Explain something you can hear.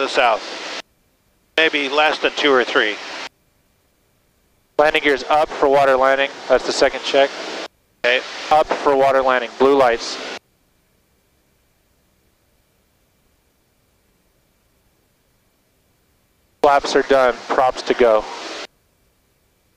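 A man speaks calmly through a headset intercom.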